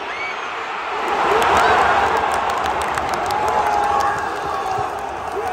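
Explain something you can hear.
A stadium crowd roars loudly as a shot goes in near goal.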